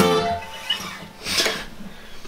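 An acoustic guitar strums a chord and rings out.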